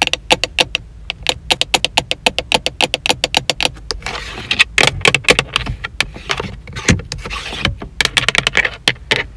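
Long fingernails tap rapidly on hard plastic.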